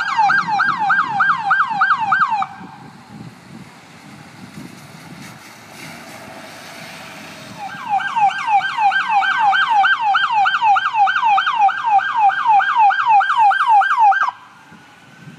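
A police siren yelps rapidly nearby.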